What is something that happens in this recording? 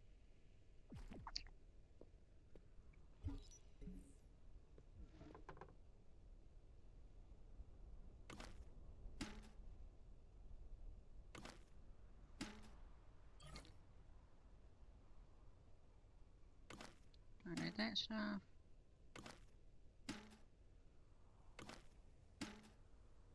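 Short game menu clicks sound again and again.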